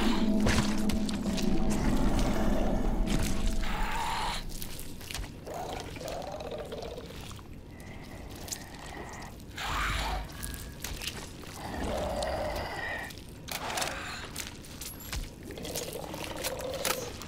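Footsteps shuffle slowly over a hard, gritty floor.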